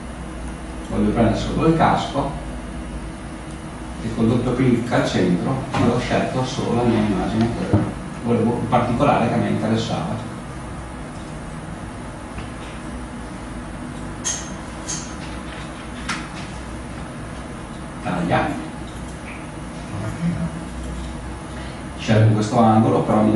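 A man speaks calmly in bursts, heard from across an echoing room.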